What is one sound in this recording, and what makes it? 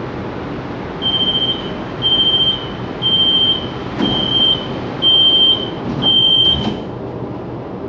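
A train's door warning beeps repeatedly.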